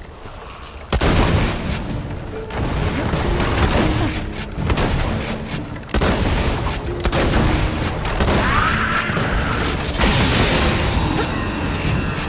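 Gunfire bursts rapidly from a weapon.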